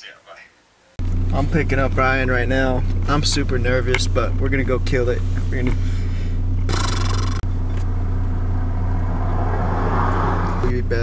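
A young man talks with animation in a car.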